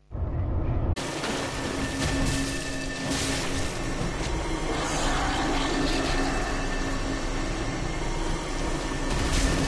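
Heavy blows land in a fight.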